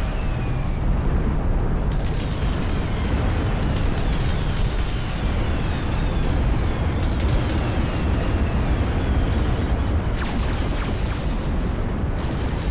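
A deep, steady rumble of battle goes on throughout.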